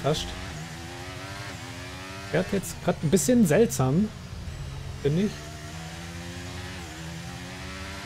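A racing car engine whines at high revs and changes pitch with each gear shift.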